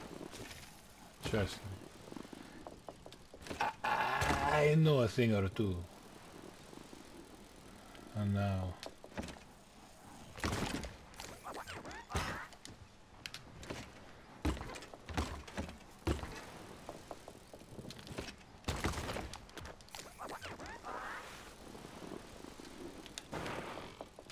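Bicycle tyres roll and skid over a wooden ramp.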